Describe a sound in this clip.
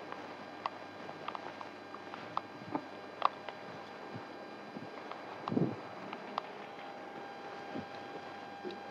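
Dry plant stalks click and rustle as they are handled.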